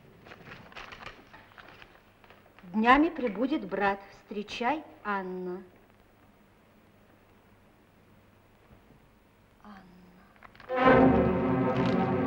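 Paper rustles as a letter is unfolded.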